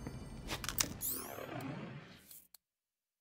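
A game menu opens with a soft chime.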